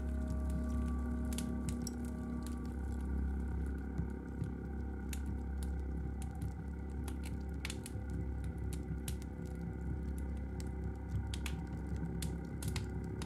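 Sharp electronic clicks pop irregularly through the music.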